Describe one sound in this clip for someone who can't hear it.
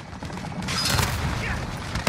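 A bolt-action sniper rifle fires a sharp shot.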